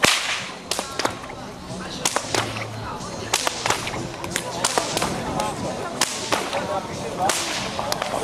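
A whip cracks sharply again and again outdoors.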